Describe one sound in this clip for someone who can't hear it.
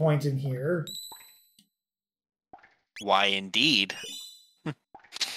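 Short electronic beeps chime from a game menu.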